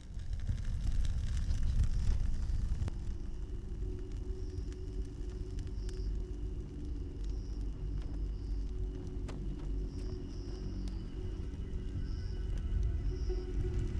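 Flames crackle and roar as paper burns.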